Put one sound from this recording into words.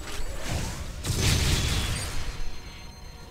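A loud electric blast roars and crackles.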